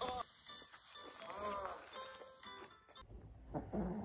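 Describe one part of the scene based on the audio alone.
A burger wrapper rustles and crinkles.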